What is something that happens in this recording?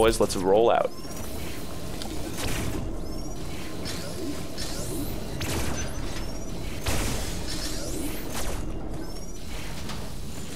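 Laser blasts fire in quick bursts.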